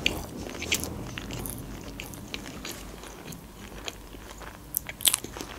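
A young woman chews food with wet, crunchy mouth sounds close to a microphone.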